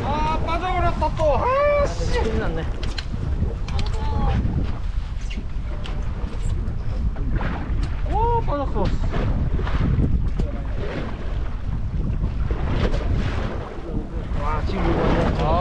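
A man laughs close by.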